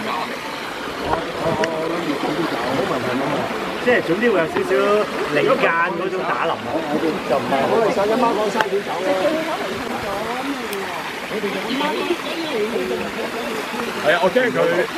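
Several adult men and women chatter and call out nearby, outdoors.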